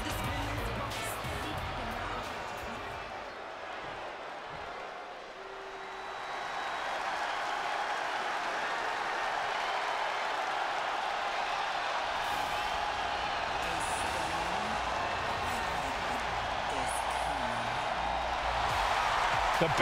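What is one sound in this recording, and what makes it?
A large crowd cheers and roars in a vast echoing arena, swelling louder after a few seconds.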